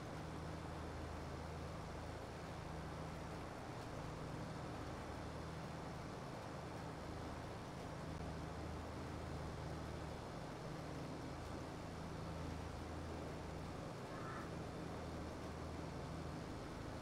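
A tractor engine hums steadily at a low pitch.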